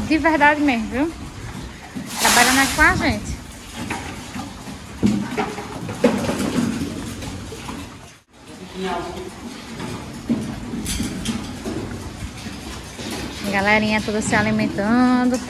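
Piglets squeal and grunt nearby.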